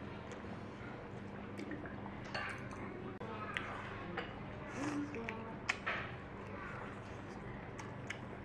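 A man chews and slurps food close up.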